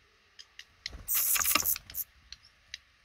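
Baby birds in a nest burst into loud, shrill begging cheeps.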